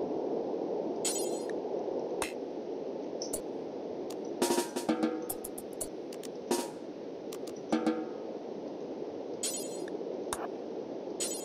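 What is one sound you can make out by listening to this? Sharp, short interface clicks sound now and then.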